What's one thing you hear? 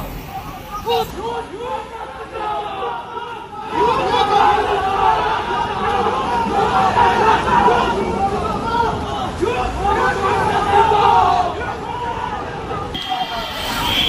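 A group of men shout loudly outdoors.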